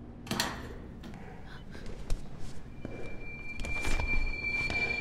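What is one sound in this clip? A man's footsteps tap slowly on a hard floor.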